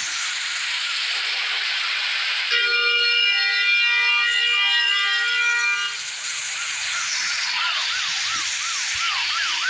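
Rain pours down steadily with a loud hiss.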